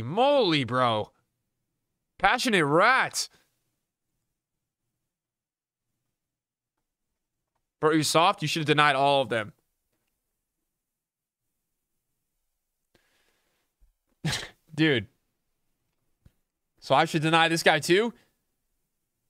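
A young man speaks with animation close to a microphone, in short bursts with pauses.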